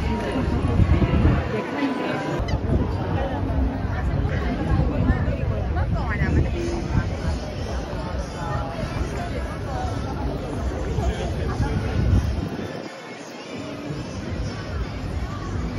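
A busy crowd chatters and murmurs outdoors.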